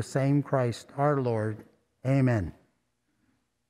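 An elderly man speaks slowly and clearly into a microphone.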